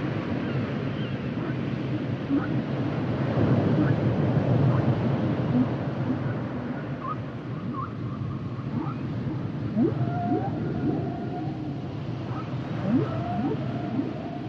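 Water rumbles and hisses steadily underwater.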